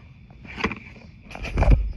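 A paper label peels off a cardboard box.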